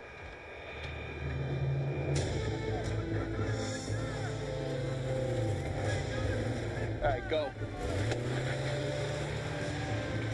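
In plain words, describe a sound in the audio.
Fire engines idle with a low rumble.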